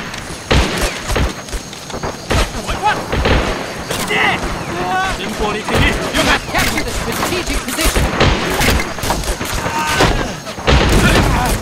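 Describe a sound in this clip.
Gunshots crack repeatedly at close and far range.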